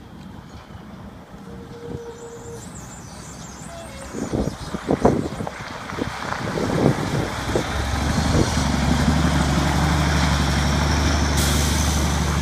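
A heavy truck engine rumbles, growing louder as it approaches and passes close by.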